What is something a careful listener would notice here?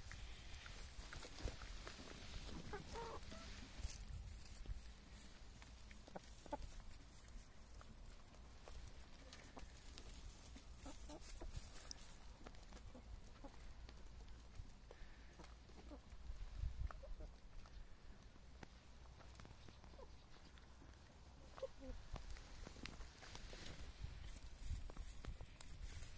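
Chickens scratch and peck in dry grass.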